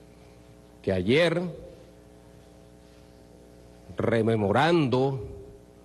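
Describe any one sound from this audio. A man speaks firmly into a microphone, in short bursts with pauses.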